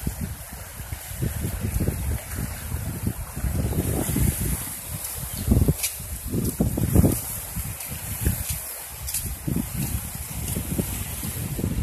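A river rushes steadily past.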